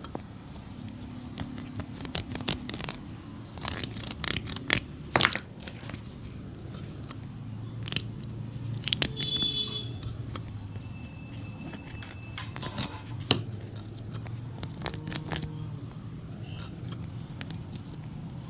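A metal tool clicks and scrapes against a rubber sole.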